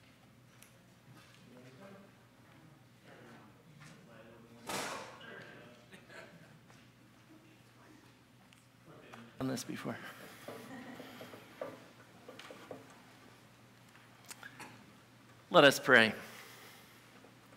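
A man speaks in a large echoing hall, heard faintly from a distance.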